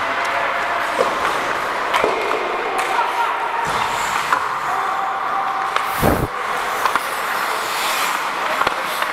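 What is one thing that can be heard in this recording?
Hockey sticks clack sharply against a puck in a large echoing arena.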